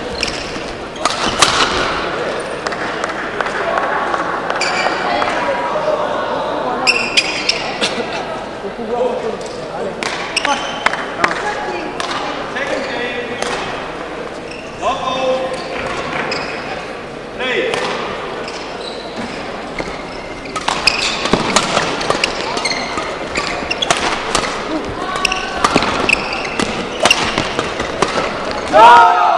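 Rackets smack a shuttlecock back and forth in sharp hits.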